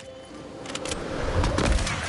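An explosion bursts nearby.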